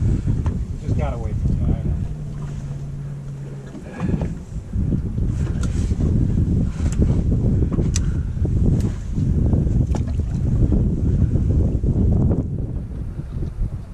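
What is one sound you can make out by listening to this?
Water laps and splashes against a boat's hull.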